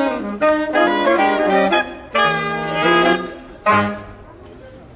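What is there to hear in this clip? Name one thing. A saxophone quartet plays a lively tune outdoors.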